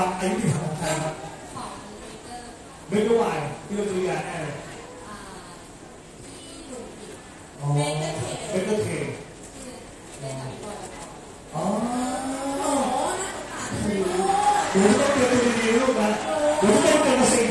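A young man speaks into a microphone over loudspeakers.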